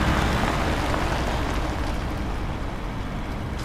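A car drives away.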